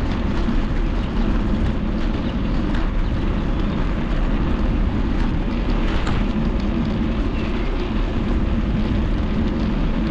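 Wind rumbles loudly across a moving microphone outdoors.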